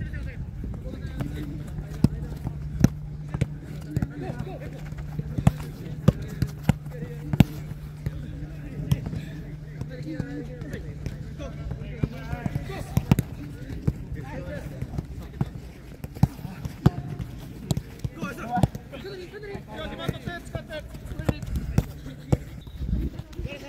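A football is kicked back and forth with sharp thuds outdoors.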